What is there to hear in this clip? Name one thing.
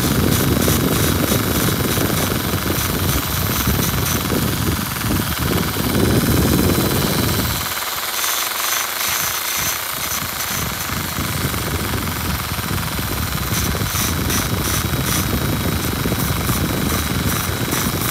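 A small rotary tool whirs steadily at high speed.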